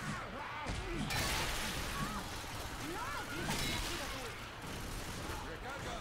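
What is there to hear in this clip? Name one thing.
An axe hacks into zombies with heavy wet thuds.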